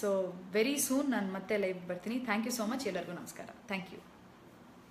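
A young woman speaks warmly and close to the microphone.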